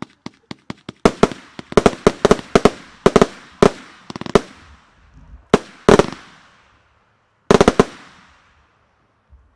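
Salute shells burst high up with sharp, loud bangs that echo away.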